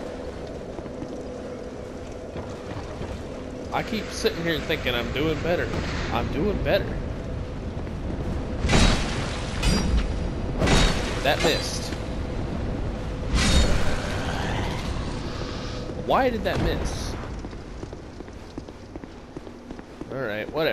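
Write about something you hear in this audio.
Footsteps scrape over stone.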